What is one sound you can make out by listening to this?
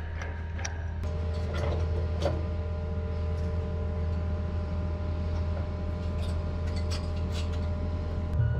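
Metal hose couplings clank as they are fitted together.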